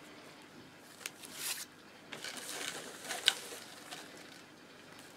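Loose paper rods clatter against each other as a hand sorts them.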